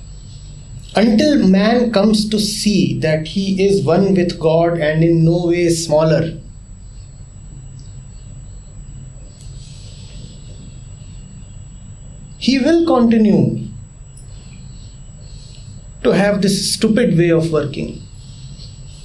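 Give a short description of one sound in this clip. A middle-aged man speaks calmly and deliberately into a nearby microphone, in pauses.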